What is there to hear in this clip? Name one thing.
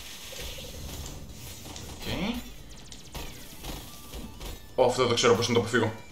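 Electronic zaps and crackles of magic attacks sound in bursts.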